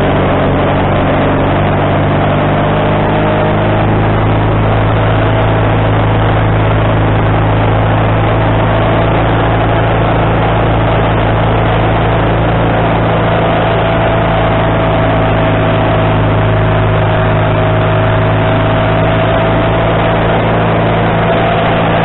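A sawmill engine roars steadily close by.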